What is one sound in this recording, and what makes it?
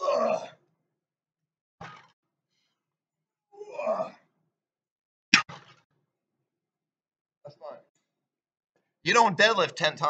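A young man grunts and speaks in short bursts close by.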